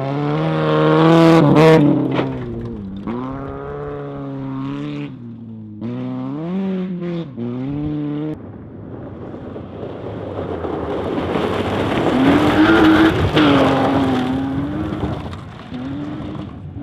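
Gravel sprays and crackles under spinning tyres.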